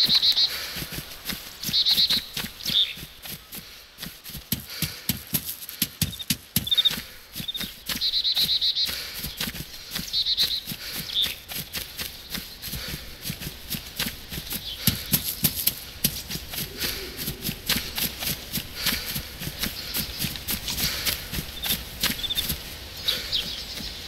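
A person crawls through dry grass with steady rustling and scraping.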